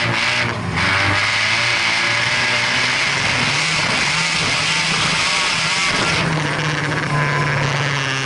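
A rally car engine roars loudly from inside the cabin, rising and falling as it revs.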